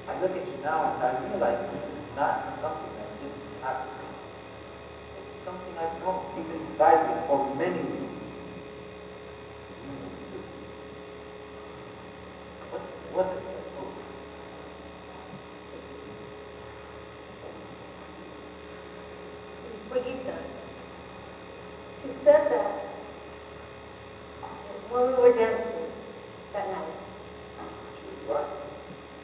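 A man speaks on a stage, heard from a distance in a large hall.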